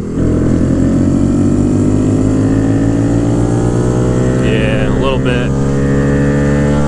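A motorcycle engine roars loudly up close, its pitch slowly rising as it speeds up.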